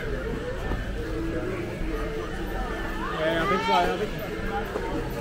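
A crowd of shoppers chatters in a large echoing hall.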